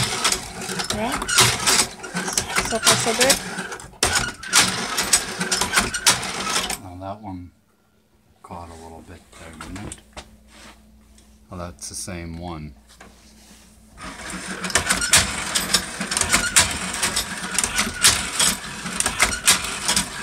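A machine clatters and rattles rapidly.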